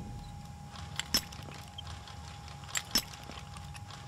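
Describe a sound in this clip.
A lock mechanism clicks softly.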